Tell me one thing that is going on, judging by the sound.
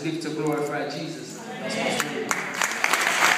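A man speaks into a microphone over loudspeakers in a large hall.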